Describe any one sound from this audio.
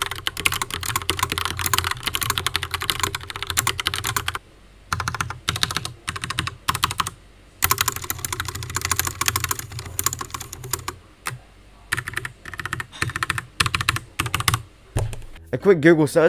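Keys clack rapidly on a mechanical keyboard.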